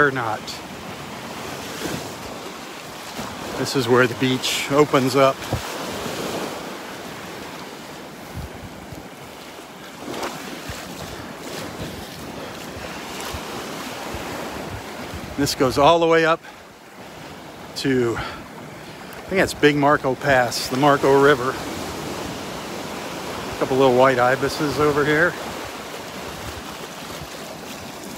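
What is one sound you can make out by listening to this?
Small waves wash and break steadily on a sandy shore.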